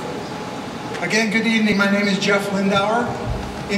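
A middle-aged man speaks calmly into a microphone over loudspeakers in a large echoing hall.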